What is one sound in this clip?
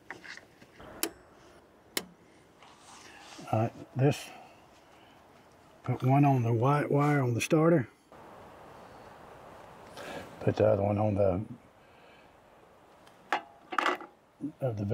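Metal tools click and clink against engine parts.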